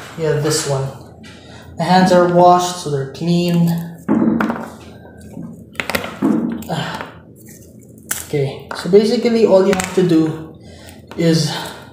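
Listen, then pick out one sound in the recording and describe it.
Fingers peel and crinkle a thin wrapper.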